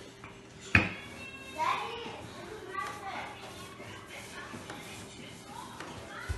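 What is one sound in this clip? Hands press and pat soft dough.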